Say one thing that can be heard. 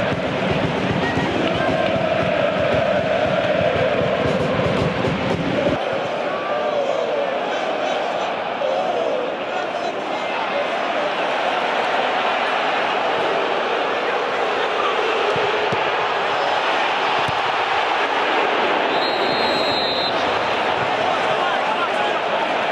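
A large stadium crowd cheers and chants loudly.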